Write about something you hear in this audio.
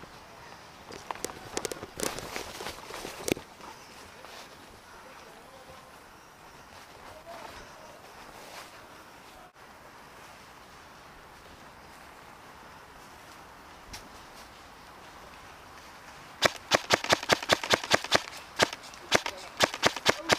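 Footsteps crunch through dry leaves close by.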